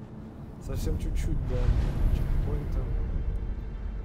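A magical shimmering chime rings out.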